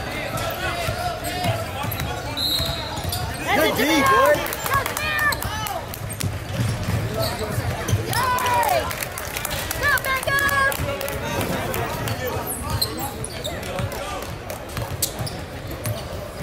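Players and spectators shout and call out in a large echoing gym.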